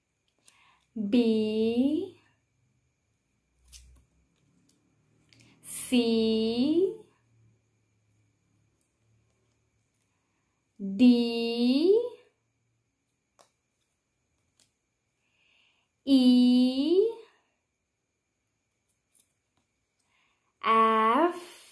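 A young woman speaks clearly and slowly close to a microphone, saying short words with pauses between.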